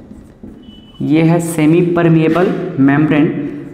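A young man speaks clearly and steadily, close by.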